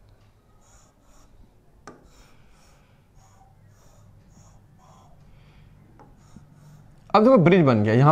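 A marker squeaks faintly on a board.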